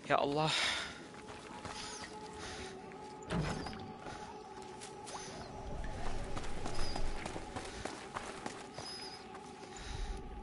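Footsteps scuff softly on a stone floor.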